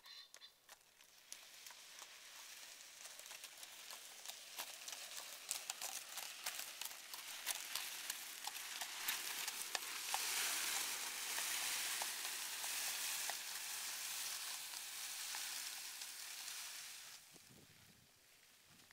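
A horse's hooves clop on gravel.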